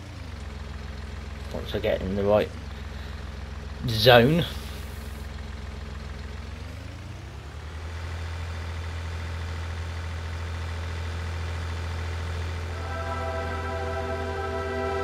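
A tractor engine hums steadily and revs up as it drives off.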